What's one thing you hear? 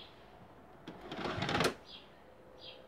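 A videotape player clunks and whirs as it ejects a cassette.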